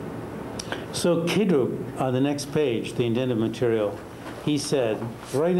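A middle-aged man speaks calmly and clearly nearby.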